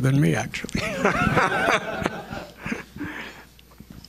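A man laughs into a microphone.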